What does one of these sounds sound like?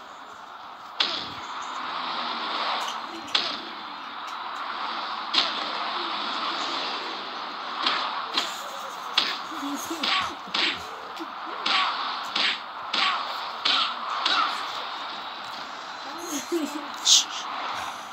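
Blows land with sharp thuds in a wrestling match.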